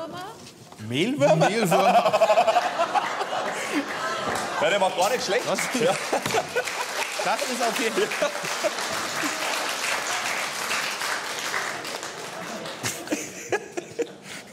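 A studio audience laughs and applauds.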